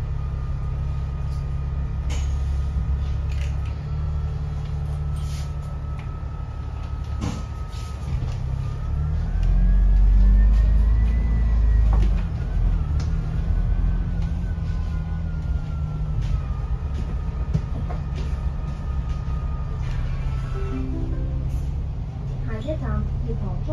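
Loose fittings inside a bus rattle and click now and then.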